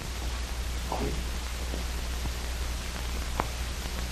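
A door opens and shuts.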